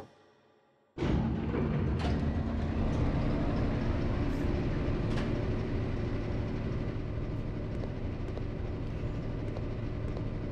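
A generator starts up and rumbles steadily.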